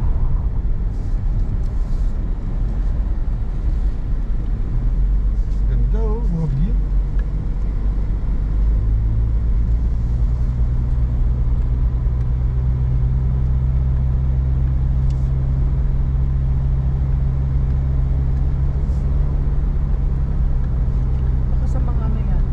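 Tyres rumble on the road inside a moving car.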